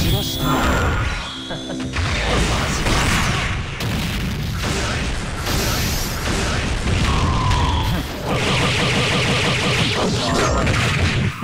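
Energy blasts crackle and whoosh.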